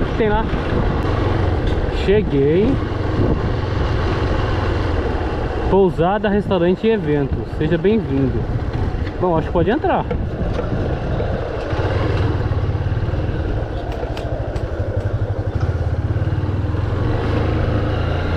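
Tyres crunch over a dirt road.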